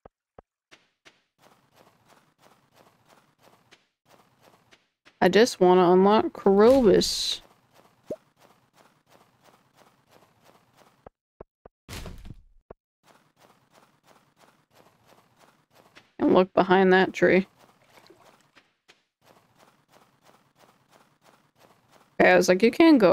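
Footsteps crunch softly on snow at a steady walking pace.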